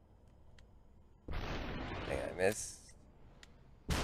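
A gunshot rings out.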